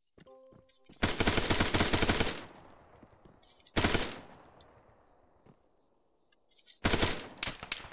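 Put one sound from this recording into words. An automatic rifle fires loud bursts that echo away.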